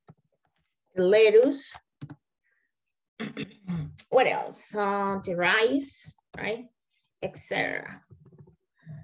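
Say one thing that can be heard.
A young woman speaks calmly over an online call, explaining slowly.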